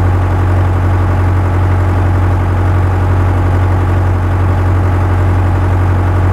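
A tractor engine hums steadily at a low idle.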